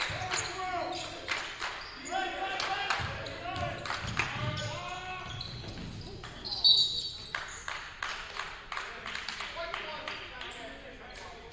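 Players shout to each other in a large echoing gym.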